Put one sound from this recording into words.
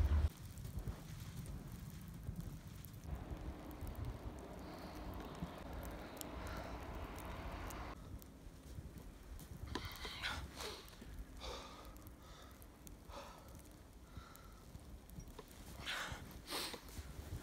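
Boots crunch and squeak through deep snow.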